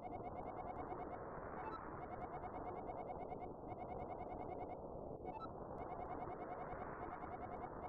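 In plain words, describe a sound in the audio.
Quick, even electronic blips tick away in short bursts from a video game.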